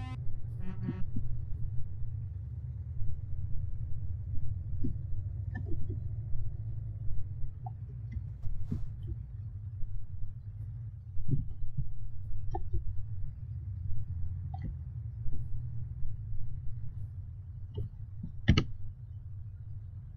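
A truck engine rumbles low and steadily.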